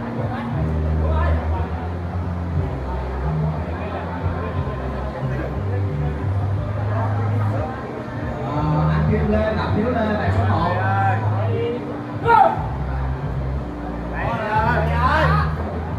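Young men talk and call out nearby.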